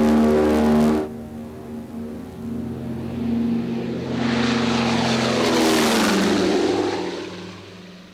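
A propeller plane roars low overhead, growing louder and then fading away.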